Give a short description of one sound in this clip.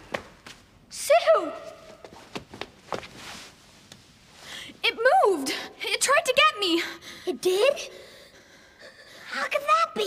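A young boy speaks in a frightened voice, close by.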